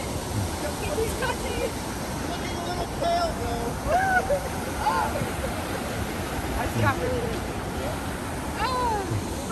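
A fountain splashes steadily outdoors.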